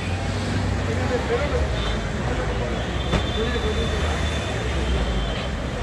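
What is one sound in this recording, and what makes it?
Car engines rumble as vehicles drive slowly past on a street.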